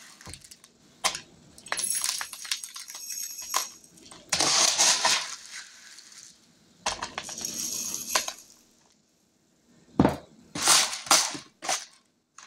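A plastic scoop knocks against a glass jar.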